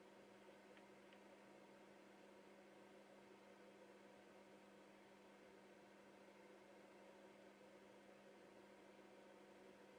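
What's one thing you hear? Metal probe tips tap lightly on a circuit board.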